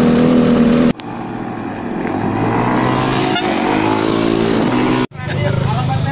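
A motorcycle engine putters close by as it rides past.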